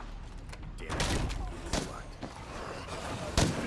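Blows thud in a close scuffle.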